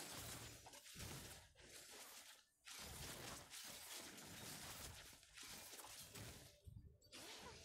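Magic blasts whoosh and crackle in a fast fight.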